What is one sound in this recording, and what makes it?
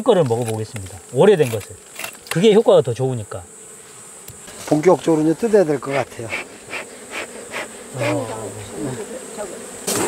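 A middle-aged man talks close by, with animation.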